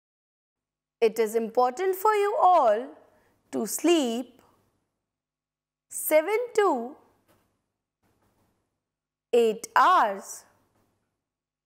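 A woman speaks calmly and clearly into a close microphone, in short phrases with pauses.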